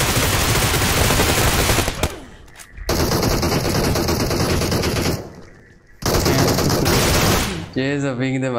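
Gunfire bursts loudly in a game.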